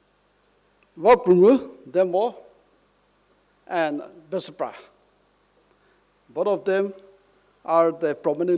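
A middle-aged man gives a speech with animation through a microphone, in short bursts with pauses.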